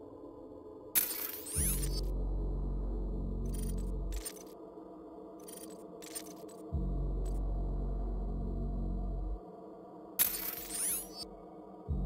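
A game upgrade chime rings with a bright shimmering sweep.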